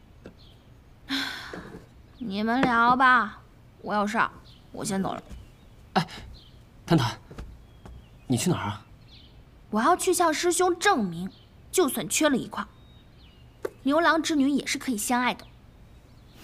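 A young woman speaks with animation up close.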